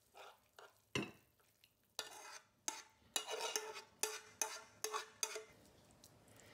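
A metal spoon scrapes food out of a nonstick frying pan.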